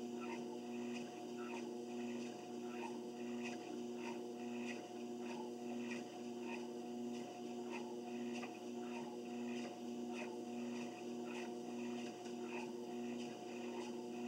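Footsteps thud rhythmically on a treadmill belt.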